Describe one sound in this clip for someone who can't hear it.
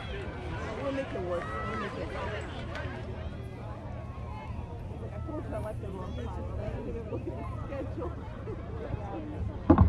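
A crowd of spectators chatters outdoors at a distance.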